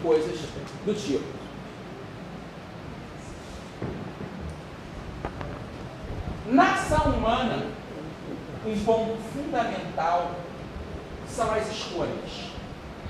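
A man speaks calmly, lecturing nearby.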